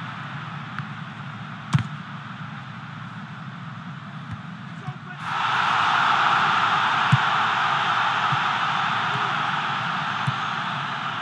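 A stadium crowd roars, swelling louder partway through.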